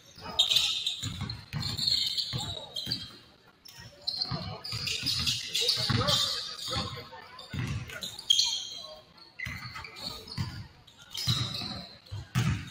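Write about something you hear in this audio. A basketball bounces on a wooden court in a large echoing gym.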